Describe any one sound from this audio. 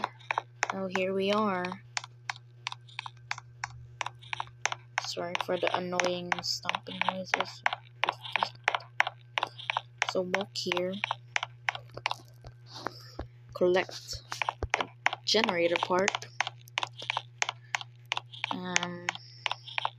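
Quick footsteps patter steadily on the ground.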